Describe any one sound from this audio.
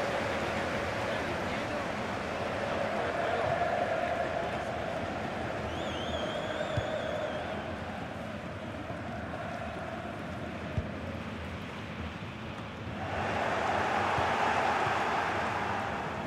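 A stadium crowd roars steadily in a large open arena.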